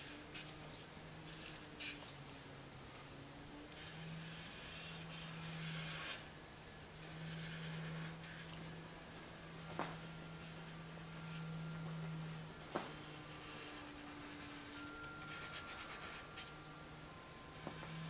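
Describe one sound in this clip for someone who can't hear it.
A marker squeaks and scratches on paper in short strokes.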